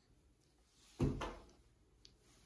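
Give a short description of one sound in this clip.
A baby's hands slap against a mirror.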